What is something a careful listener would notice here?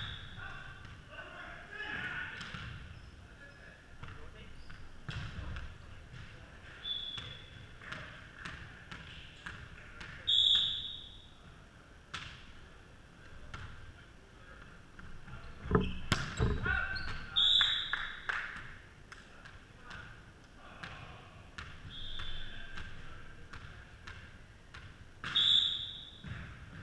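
Young men call out to each other across a large echoing gym.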